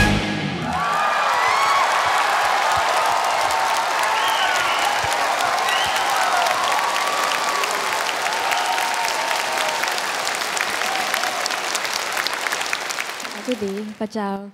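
A large crowd applauds and cheers loudly.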